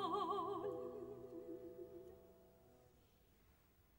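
A woman sings a long, wavering high note in a large echoing hall, and the note rings away.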